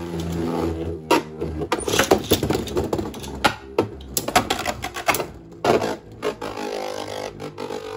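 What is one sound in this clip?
Spinning tops clash together with sharp clicks.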